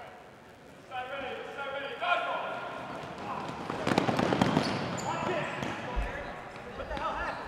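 Players shout and cheer as a game begins.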